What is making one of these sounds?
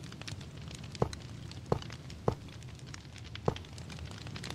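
Blocks thud softly as they are placed one after another.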